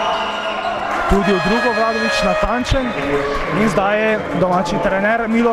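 Sneakers squeak sharply on a hard court as players run.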